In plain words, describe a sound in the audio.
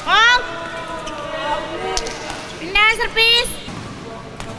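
Shoes squeak sharply on a court floor in a large echoing hall.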